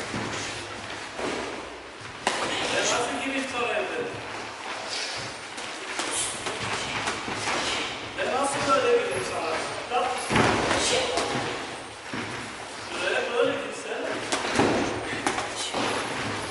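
Boxing gloves thud against pads and arms.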